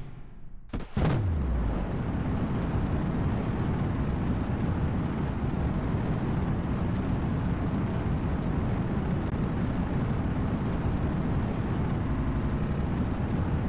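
Rocket engines roar with a deep, steady rumble.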